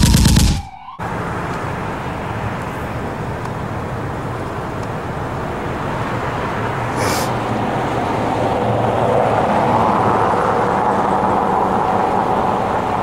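A car engine idles nearby.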